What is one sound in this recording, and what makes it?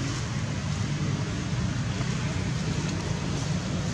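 A monkey walks over dry leaves, rustling them softly.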